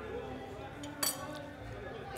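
A utensil clinks sharply once against a dish.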